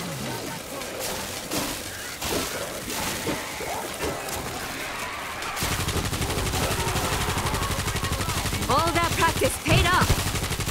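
Zombies snarl and shriek nearby.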